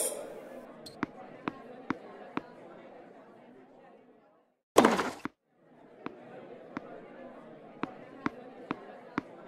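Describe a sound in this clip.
A tennis ball bounces repeatedly on a hard court.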